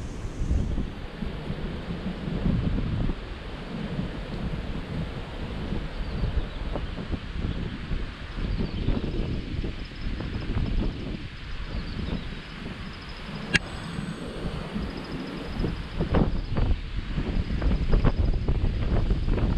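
A shallow river ripples and trickles over stones.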